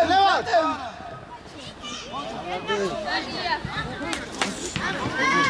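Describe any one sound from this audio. Young boys shout to each other across an outdoor pitch.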